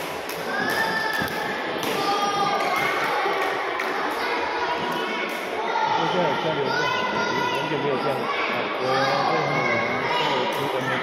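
A badminton racket strikes a shuttlecock with sharp pops.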